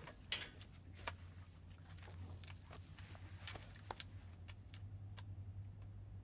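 Headphones rustle and knock softly as they are put on.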